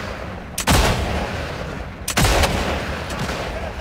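A rifle shot cracks loudly with a rolling echo.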